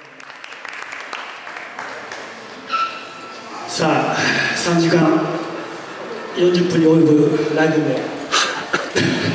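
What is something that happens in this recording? Acoustic guitars strum a song through loudspeakers.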